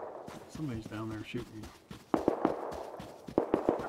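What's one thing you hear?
Footsteps crunch quickly over dry ground.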